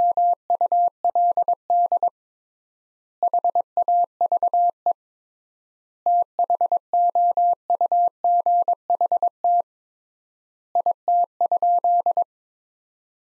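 A telegraph key taps out steady Morse code beeps.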